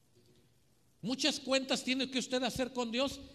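A middle-aged man speaks with animation through a microphone over loudspeakers.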